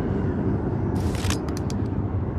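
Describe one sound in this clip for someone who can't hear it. A short whooshing sound plays as a game menu opens.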